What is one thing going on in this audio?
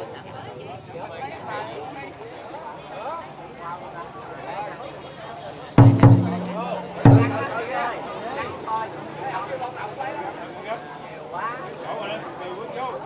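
A crowd of men and women chatters and murmurs outdoors.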